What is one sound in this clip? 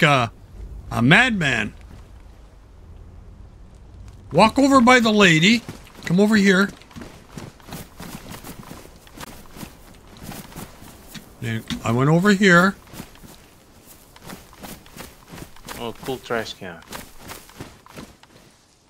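Footsteps crunch on grass and gravel.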